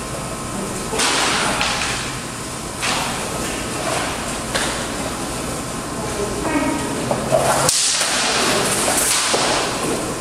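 Swords clash and clatter in armoured sparring, echoing in a hard-walled room.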